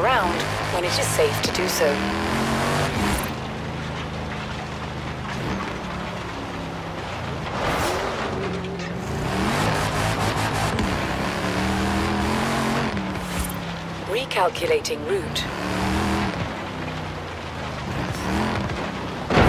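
A car engine revs and shifts gears as the car drives fast.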